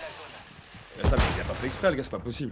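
An explosion bursts loudly.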